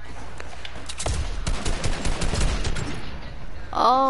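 Gunshots fire in quick bursts in a video game.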